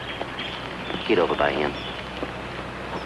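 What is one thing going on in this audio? A second man answers quietly.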